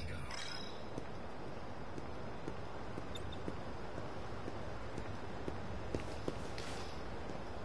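Footsteps tap steadily on a hard rooftop.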